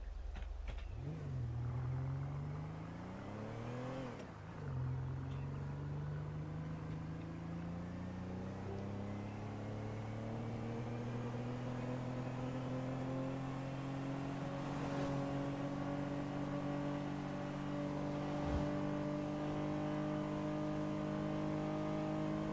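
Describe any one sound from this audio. A car engine hums and revs, rising steadily in pitch as the car speeds up.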